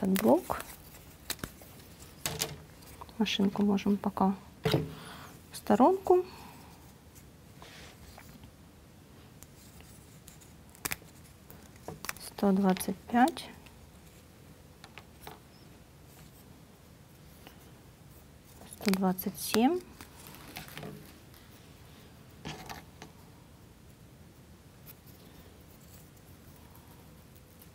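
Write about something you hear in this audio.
Small wooden parts click and tap as they are handled and pressed together.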